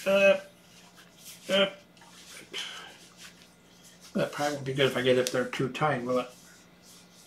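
A middle-aged man speaks calmly, close by.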